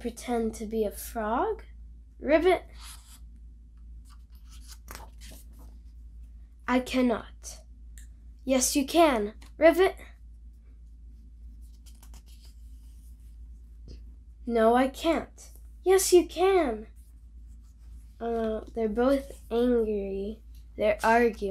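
A young girl reads aloud expressively, close by, in short bursts with pauses.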